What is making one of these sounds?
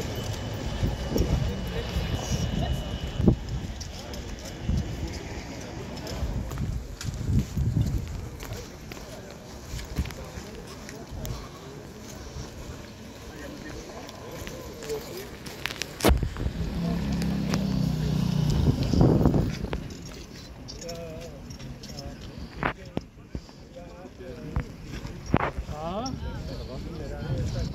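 Men and women chatter in a crowd outdoors.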